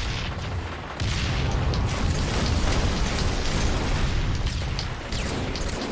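Explosions thunder and rumble.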